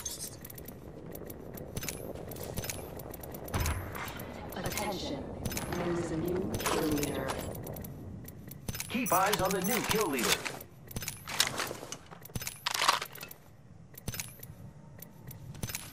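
Game menu clicks sound as items are picked up.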